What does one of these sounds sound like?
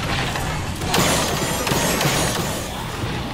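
A spell bursts with a sharp whoosh.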